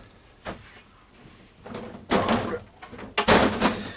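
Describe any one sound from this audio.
A plastic drawer unit knocks and rattles as it is tipped over.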